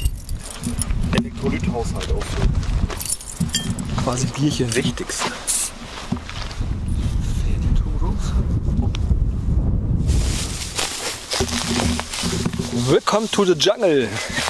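A man speaks calmly, close up.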